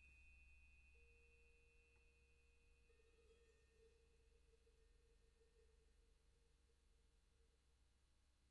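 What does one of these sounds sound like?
A mallet gently taps metal bells.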